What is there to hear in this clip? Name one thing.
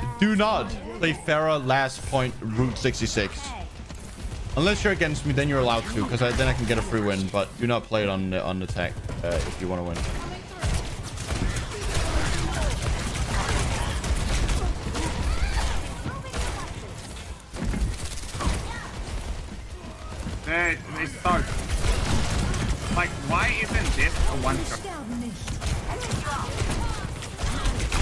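Gunfire rattles and bangs rapidly.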